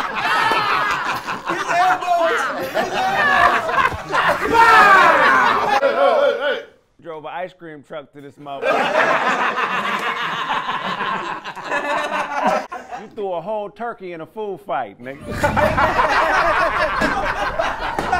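A woman laughs.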